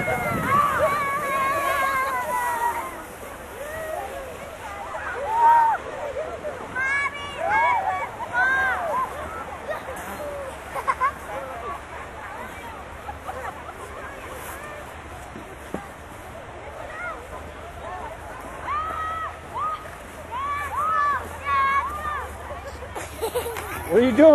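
Young children shout and squeal playfully close by, outdoors.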